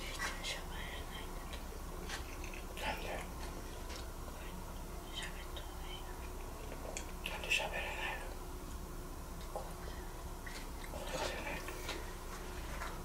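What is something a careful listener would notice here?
A man talks quietly and questioningly.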